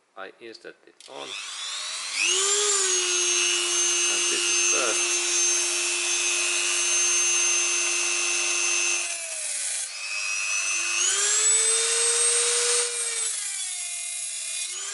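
A small rotary tool whirs with a high, steady whine that rises in pitch now and then.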